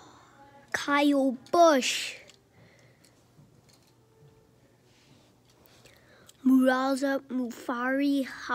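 A die-cast toy car is pushed across a carpet.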